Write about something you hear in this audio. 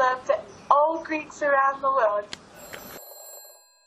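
A young woman sings.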